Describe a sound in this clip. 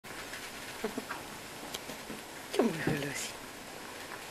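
A puppy whines and yelps close by.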